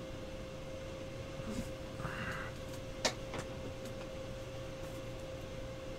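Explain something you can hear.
A plastic card sleeve crinkles and rustles in hands.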